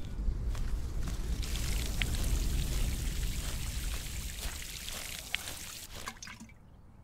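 Water pours from a watering can onto grass.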